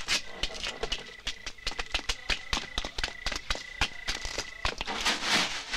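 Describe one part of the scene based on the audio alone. Hooves clop on hard ground.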